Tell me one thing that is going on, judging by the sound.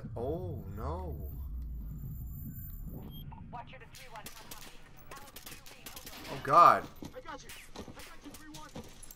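A young man talks close to a microphone with animation.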